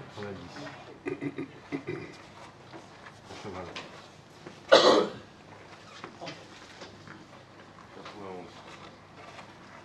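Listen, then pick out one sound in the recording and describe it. Men talk quietly in the background.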